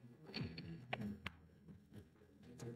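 A carton is set down on a hard desk with a soft knock.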